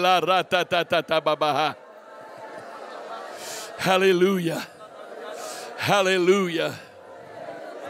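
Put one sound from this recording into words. A man sings long notes through a microphone in a large hall.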